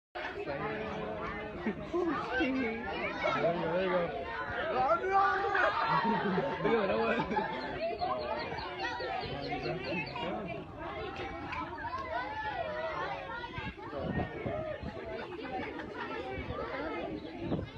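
Ducklings peep.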